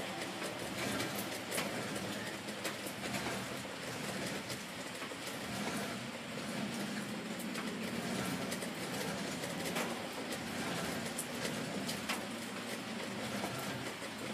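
A cable runs through a pulley with a soft whir.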